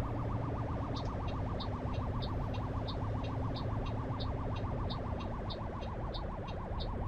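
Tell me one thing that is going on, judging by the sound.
A turn signal ticks in a quick, even rhythm.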